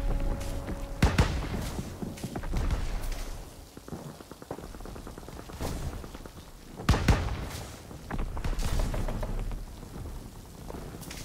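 Anti-aircraft guns boom far off.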